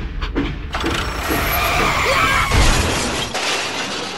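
Toy tractors crash together with a loud clatter.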